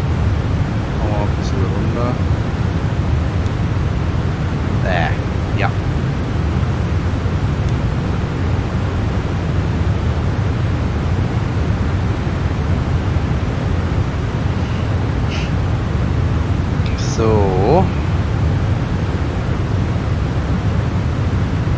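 A steady low engine roar fills an aircraft cockpit.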